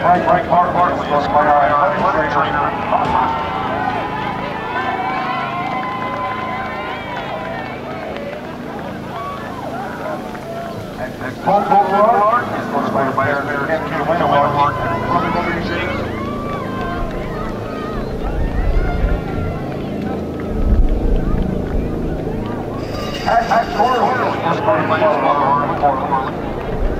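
Young men chatter and call out nearby, outdoors.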